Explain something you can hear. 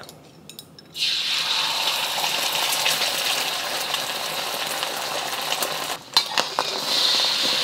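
Beaten egg hisses and sizzles loudly as it is poured into a hot wok.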